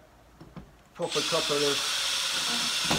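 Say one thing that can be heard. A cordless drill whirs as it drives a screw.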